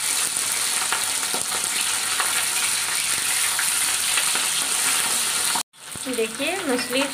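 Whole fish sizzle as they shallow-fry in hot oil.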